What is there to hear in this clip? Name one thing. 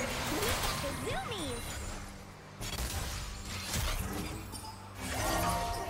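Spell effects whoosh and zap in a video game.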